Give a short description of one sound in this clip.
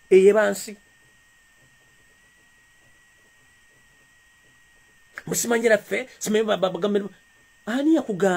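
A man speaks with animation close to a microphone, in short bursts.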